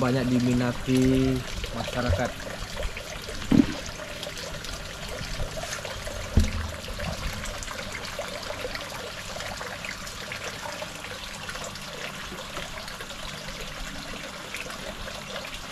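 Water trickles and splashes steadily into a pool.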